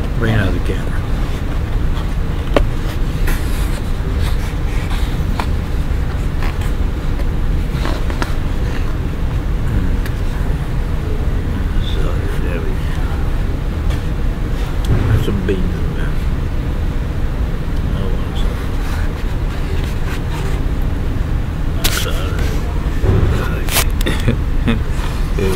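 A middle-aged man talks calmly and close to the microphone.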